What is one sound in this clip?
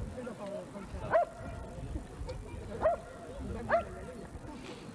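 A man calls out sharply to a dog nearby.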